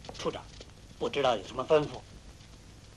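A man speaks politely, asking a question.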